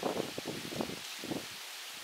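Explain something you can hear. Water pours and splashes from a container into a bag.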